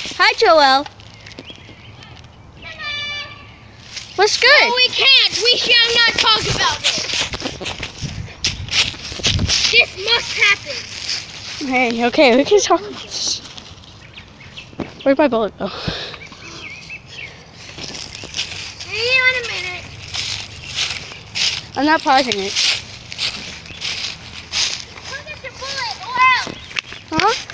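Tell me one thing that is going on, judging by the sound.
A young child shouts and squeals with excitement close by.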